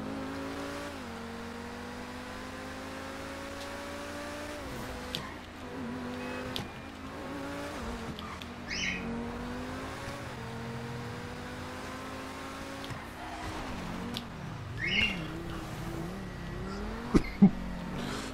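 A sports car engine roars, revving up and dropping as it shifts gears.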